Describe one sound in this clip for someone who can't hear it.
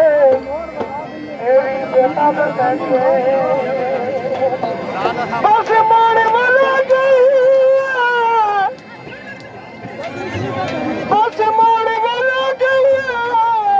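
A hand drum beats.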